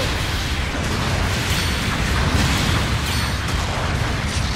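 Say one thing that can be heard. Beam weapons zap and crackle.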